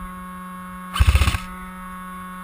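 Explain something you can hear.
A toy gun fires a rapid burst of shots close by.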